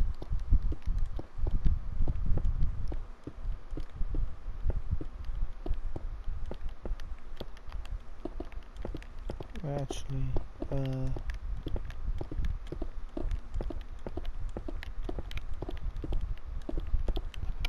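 Short block-placing clicks tap repeatedly in a video game.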